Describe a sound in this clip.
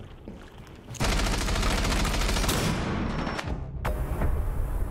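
A flash grenade bursts with a loud bang and a rushing ringing noise.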